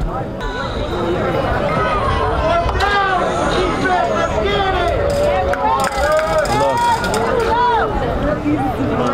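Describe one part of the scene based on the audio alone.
Many young people talk and call out at a distance outdoors.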